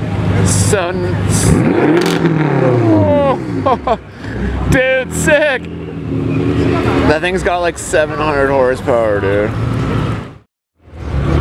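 A sports car engine revs loudly and rumbles as the car pulls away.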